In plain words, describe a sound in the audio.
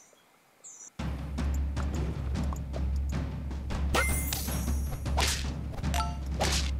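Upbeat game music plays.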